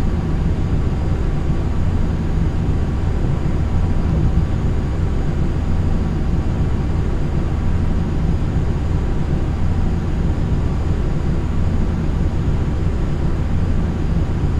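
Jet engines drone steadily with a low, even rumble.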